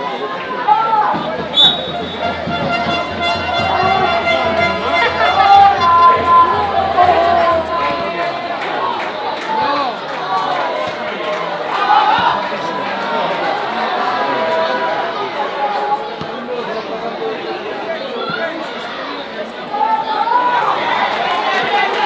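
Young players shout and call to each other outdoors.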